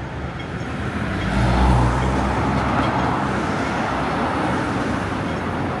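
A car passes close by, rising and then fading.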